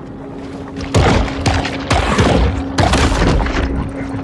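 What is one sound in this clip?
A fish strikes its prey with a sharp splashing burst.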